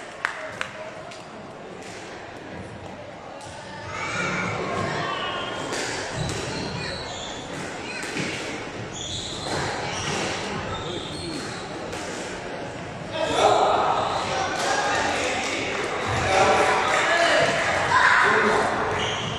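A squash ball smacks against the walls, echoing in a large hall.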